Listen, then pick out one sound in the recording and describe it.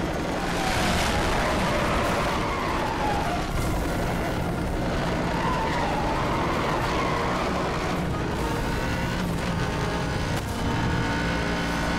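A racing car engine roars loudly at high speed.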